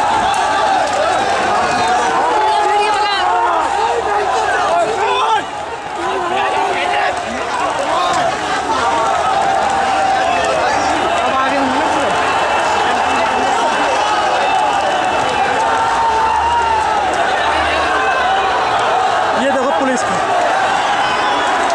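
A crowd of young men shouts and clamours outdoors.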